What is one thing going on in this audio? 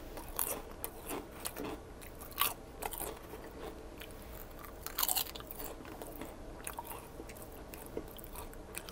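A man crunches potato chips loudly close to a microphone.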